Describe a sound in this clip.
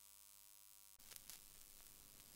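A stylus drops onto a spinning record with a soft thump.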